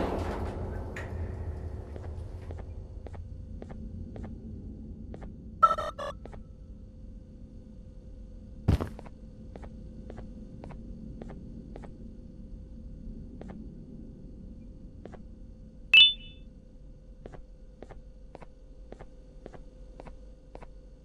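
Footsteps tread steadily on a wooden floor.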